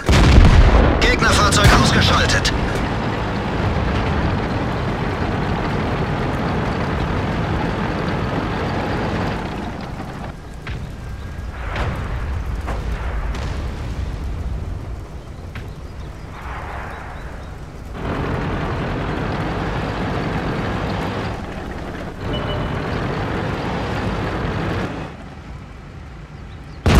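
A tank engine rumbles and clanks as it drives.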